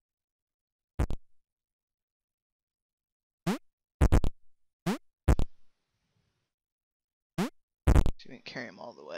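Short electronic bleeps sound as small blocks jump.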